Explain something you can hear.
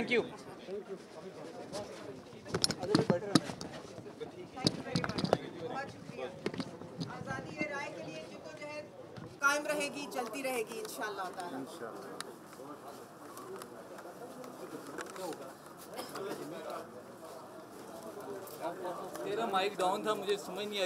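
A crowd of men talk over one another nearby.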